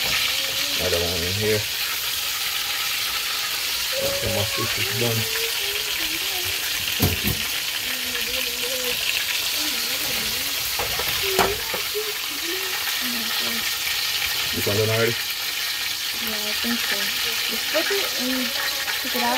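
Hot oil sizzles and crackles steadily in a pan.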